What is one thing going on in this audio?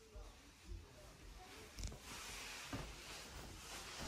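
A wooden window slides open with a knock.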